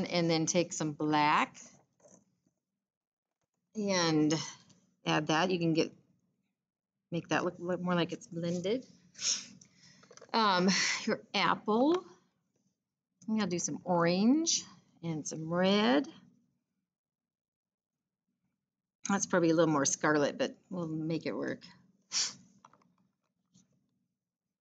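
A middle-aged woman talks calmly into a close microphone, with pauses.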